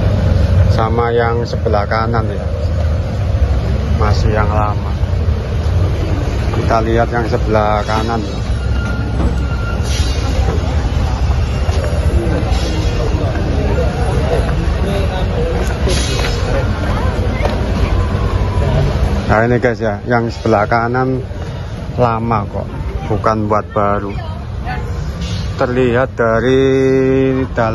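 A man talks close by in short bursts.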